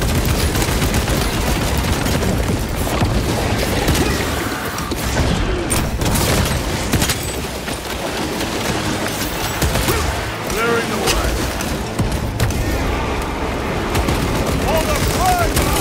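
Monstrous creatures screech and snarl.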